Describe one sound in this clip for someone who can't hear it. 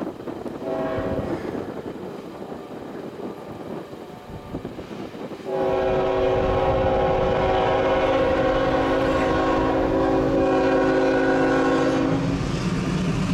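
A train horn blows a short blast, then a long loud blast.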